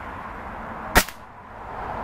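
A single gunshot cracks sharply.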